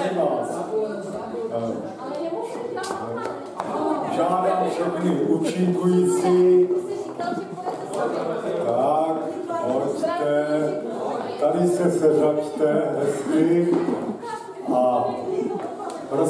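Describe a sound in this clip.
A man speaks with animation into a microphone, heard through loudspeakers in an echoing hall.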